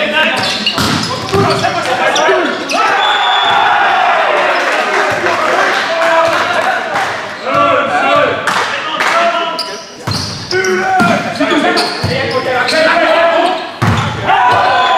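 A volleyball is struck hard, echoing through a large hall.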